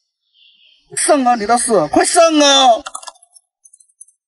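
A young man speaks loudly in a mocking voice, close by.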